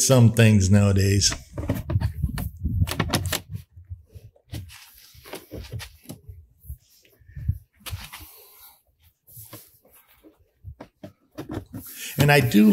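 An older man talks calmly close by.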